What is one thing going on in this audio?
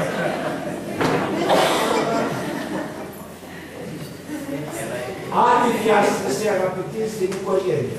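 An elderly man speaks calmly into a microphone, heard through loudspeakers in a large room.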